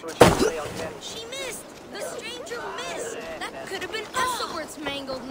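A young boy speaks excitedly nearby.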